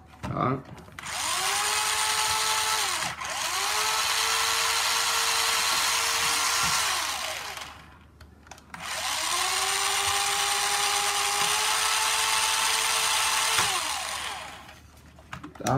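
A small electric motor whines steadily, rising in pitch as it speeds up.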